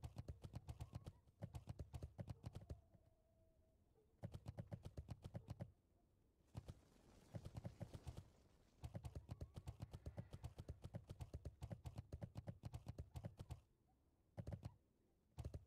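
Quick footsteps patter on hard ground in short bursts.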